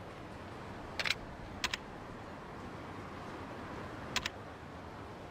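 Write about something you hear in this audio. Short electronic menu blips sound a few times.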